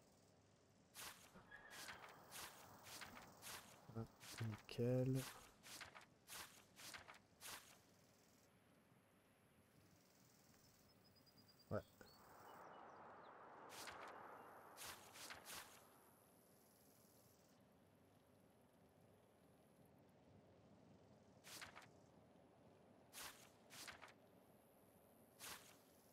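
Short, soft interface clicks sound every so often.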